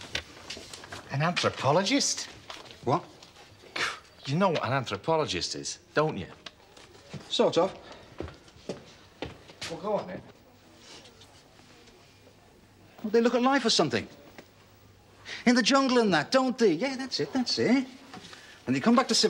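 A middle-aged man speaks with a light, amused tone close by.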